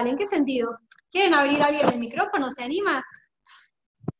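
A young woman speaks calmly through an online call microphone.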